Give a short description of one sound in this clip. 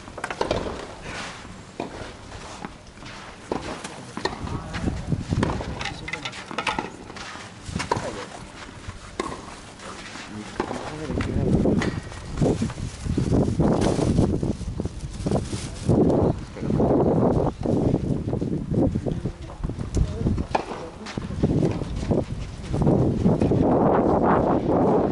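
A tennis ball is struck by rackets with sharp pops.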